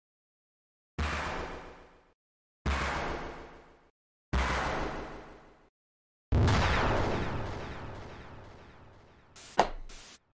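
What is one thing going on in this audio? Sharp crashing bursts ring out one after another and slowly fade.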